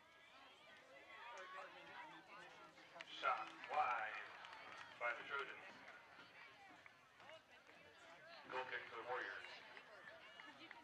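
A small crowd of spectators shouts and cheers close by, outdoors.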